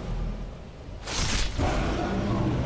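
A burst of flame whooshes loudly.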